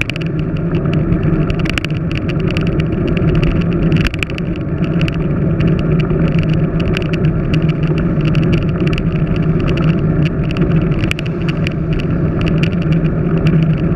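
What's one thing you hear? Wind roars over a microphone outdoors.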